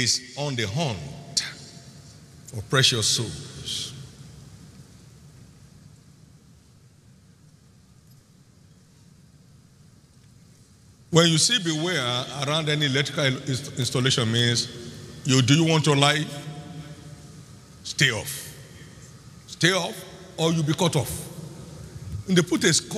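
An elderly man preaches with animation through a microphone in a large echoing hall.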